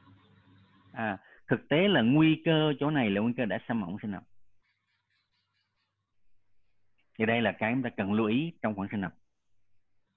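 A man speaks calmly over an online call, explaining.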